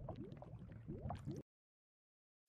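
Lava bubbles and pops close by.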